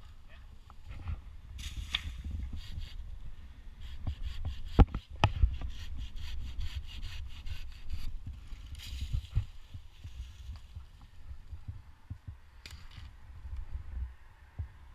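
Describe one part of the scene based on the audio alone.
Twigs and branches rustle and snap close by.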